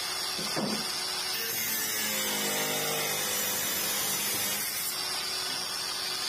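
An angle grinder's disc grinds against metal with a harsh rasp.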